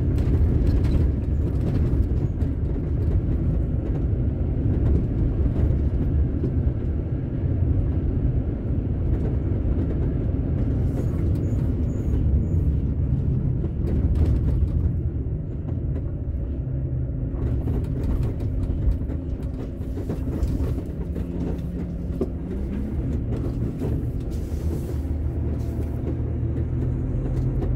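A vehicle engine drones steadily from inside the cab.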